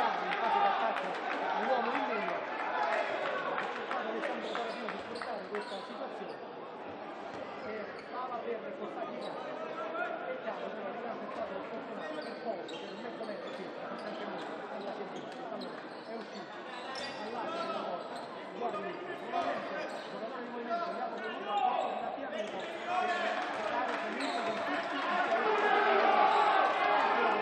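Spectators in a large echoing hall chatter and call out.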